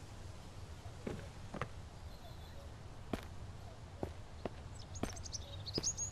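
Footsteps crunch on dry ground and twigs.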